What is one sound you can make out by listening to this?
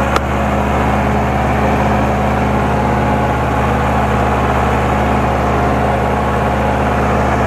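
A tractor engine chugs loudly and steadily up close.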